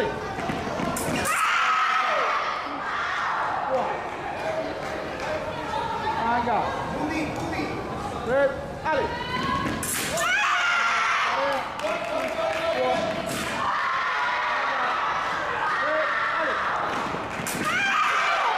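Fencing blades clash and click sharply.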